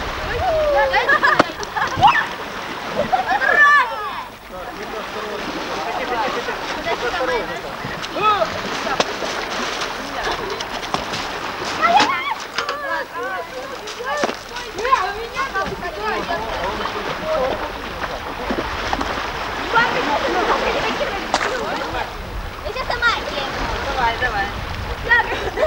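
Small waves lap and splash at the shore.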